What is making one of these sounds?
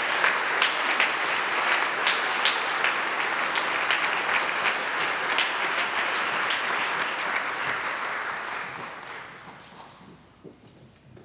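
An audience applauds in a large echoing hall, then the applause fades away.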